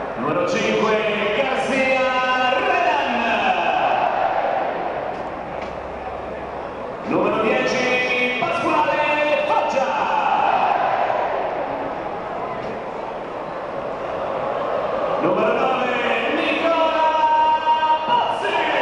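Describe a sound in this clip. A large stadium crowd sings and chants loudly in waves, echoing across the stands.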